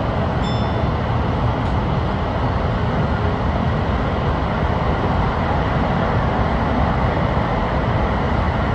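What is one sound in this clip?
A train rumbles steadily through a tunnel, its wheels roaring on the rails.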